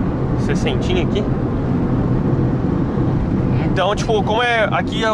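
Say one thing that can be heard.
A car engine hums steadily with road rumble from inside the car.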